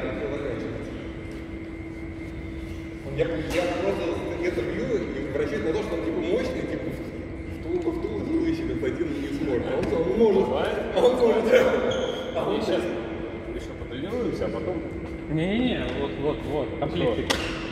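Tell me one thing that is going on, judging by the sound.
A man talks nearby in an echoing hall.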